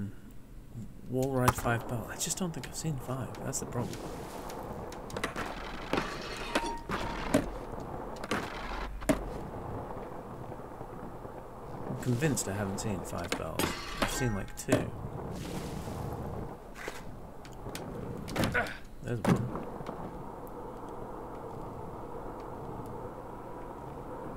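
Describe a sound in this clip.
Skateboard wheels roll and grind on concrete.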